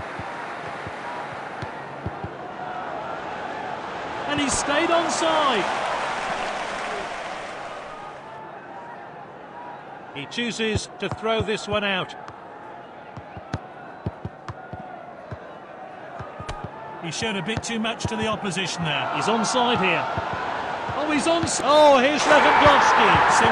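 A stadium crowd roars, swelling loudly near the end.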